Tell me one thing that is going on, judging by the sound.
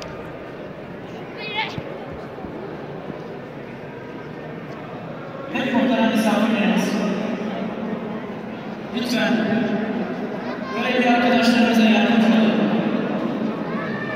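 A crowd murmurs and talks in a large echoing hall.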